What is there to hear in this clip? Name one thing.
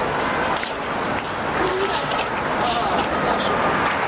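A broom sweeps across paving stones with brisk scratching strokes.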